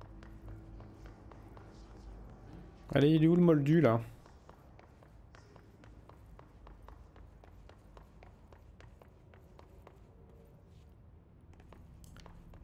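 Footsteps patter quickly on a hard floor and stairs.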